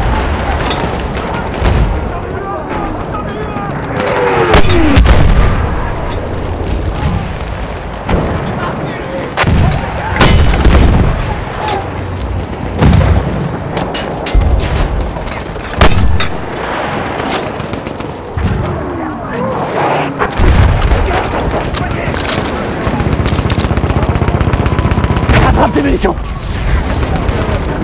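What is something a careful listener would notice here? Explosions boom and rumble nearby, again and again.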